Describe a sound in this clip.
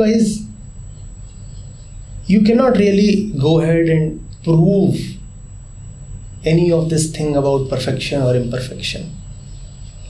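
A man speaks calmly and with animation close to a microphone, in short bursts with pauses.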